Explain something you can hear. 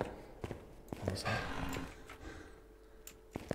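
A young man talks quietly into a close microphone.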